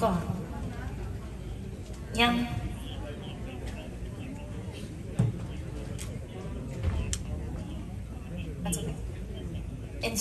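A woman speaks into a microphone over loudspeakers in a large room.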